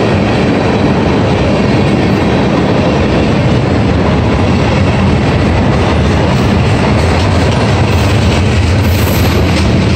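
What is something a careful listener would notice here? A freight train rumbles steadily past close by, its wheels clattering on the rails.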